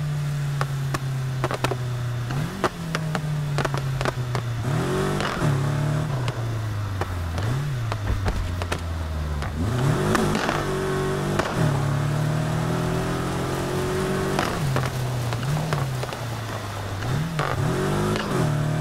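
A car engine roars and revs up and down as gears shift.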